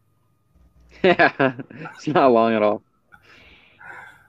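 A middle-aged man laughs softly over an online call.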